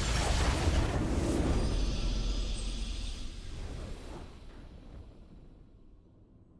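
A triumphant game fanfare swells and then slowly fades away.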